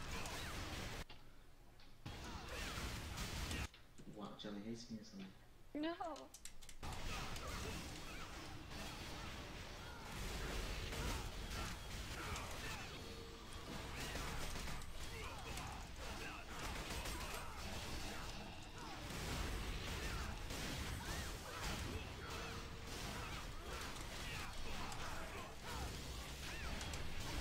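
Magical blasts and weapon strikes crash rapidly in a fierce battle.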